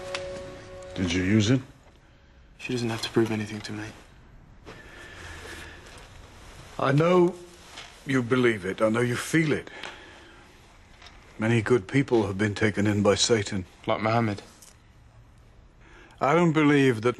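An elderly man speaks calmly and nearby.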